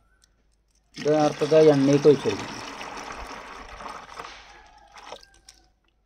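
Liquid pours and splashes into a plastic bucket.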